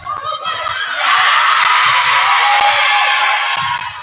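A crowd cheers and shouts loudly in an echoing gym.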